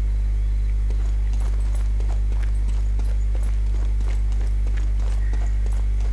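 Footsteps hurry across stone paving.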